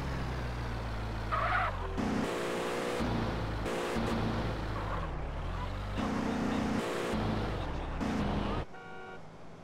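A car engine revs and hums as a car drives.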